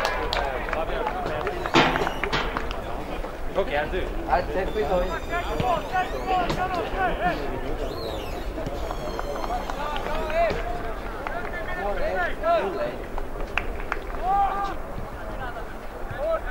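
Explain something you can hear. Players shout to one another across an open field.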